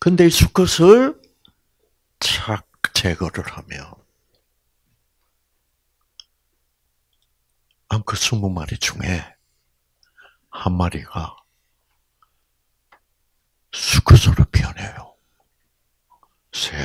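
An elderly man lectures into a microphone in short bursts, with pauses.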